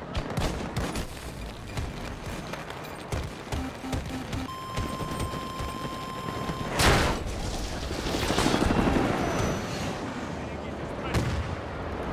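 An armoured vehicle's engine rumbles.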